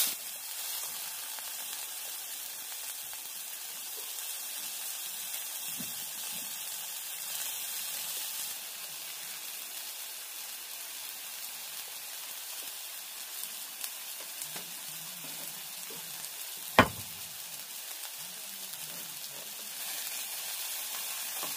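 Meat sizzles steadily in a hot pan.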